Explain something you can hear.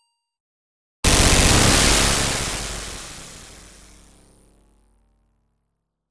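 A huge building collapses with a loud booming crash that slowly rumbles away.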